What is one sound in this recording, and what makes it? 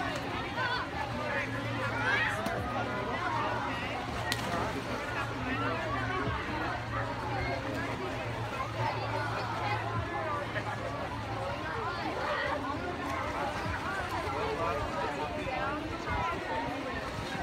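Children shout and chatter outdoors.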